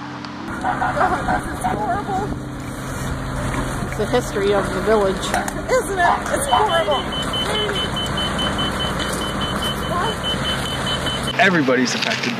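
A fire engine's motor hums steadily nearby.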